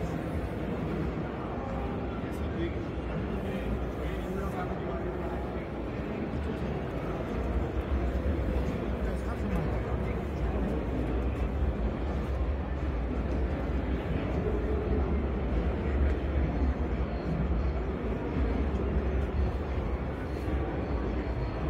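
A crowd murmurs throughout a large, echoing hall.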